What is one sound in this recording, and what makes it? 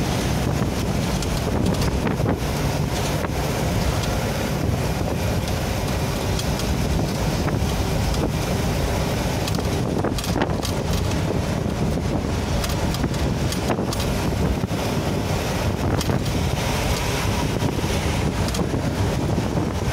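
A vehicle engine rumbles steadily while driving on a highway.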